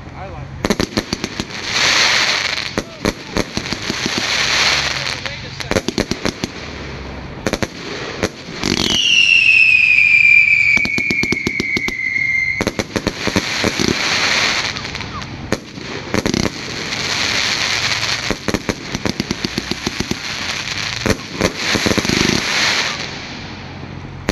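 Fireworks crackle and pop rapidly, close by.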